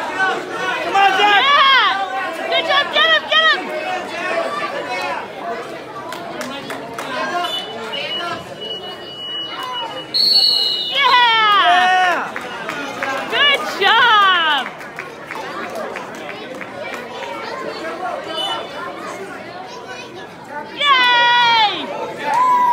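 Adults yell loudly in excited, high-pitched shouts nearby.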